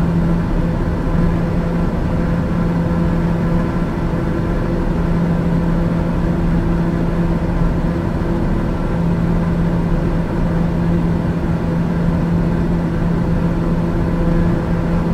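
Aircraft engines drone steadily with a low hum.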